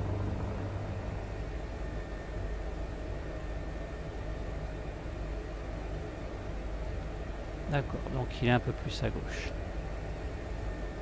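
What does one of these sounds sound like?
A helicopter engine and rotor drone steadily.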